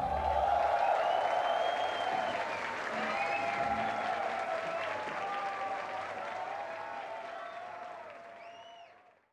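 A crowd cheers and screams loudly, then fades.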